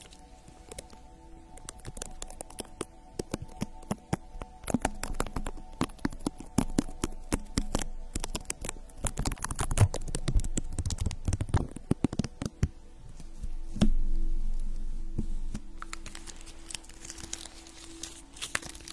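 Long fingernails tap and click close to a microphone.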